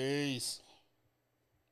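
A man speaks briefly into a microphone, close by.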